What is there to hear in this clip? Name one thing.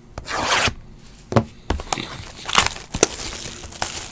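Plastic wrap and cardboard packaging crinkle and rustle as hands handle them.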